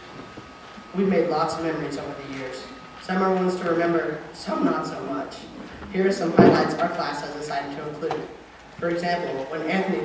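A young man speaks into a microphone over loudspeakers in a large echoing hall.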